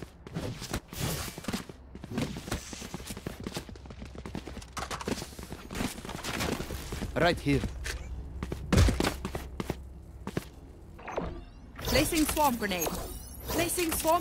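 A magical ability whooshes and crackles.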